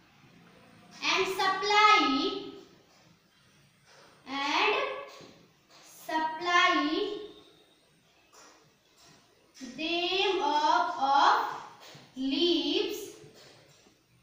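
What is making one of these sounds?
A young woman speaks clearly and slowly, in short phrases.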